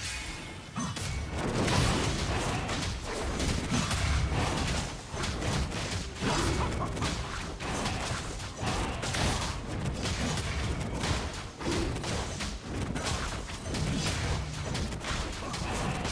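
Video game spells and attacks crackle and thud in a fight.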